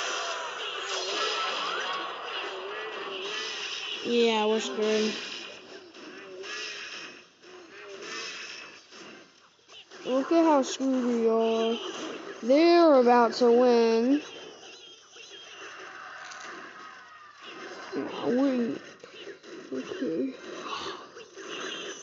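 Cartoonish battle sound effects clash and thud as small game troops fight.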